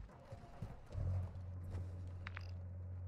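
A car engine starts and idles with a low, steady hum.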